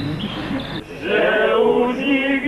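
A man sings loudly.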